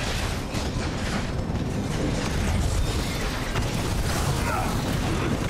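Energy blasts crackle and zap in a fight.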